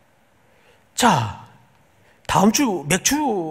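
A middle-aged man speaks with emphasis through a microphone.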